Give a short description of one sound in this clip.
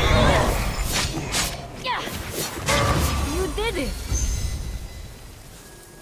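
Swords clash and spells burst in a fast fight.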